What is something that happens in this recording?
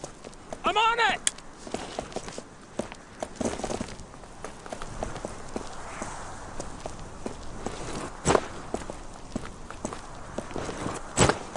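Rifles fire in sharp, scattered shots nearby.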